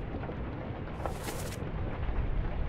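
A book page turns with a soft papery swish.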